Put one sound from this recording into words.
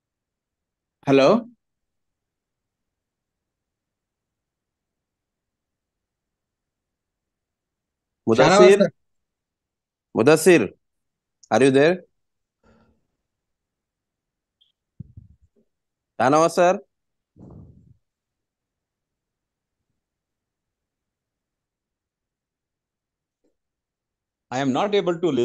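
A man speaks in short phrases over an online call.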